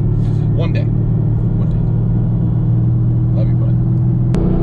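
A man speaks briefly and casually up close.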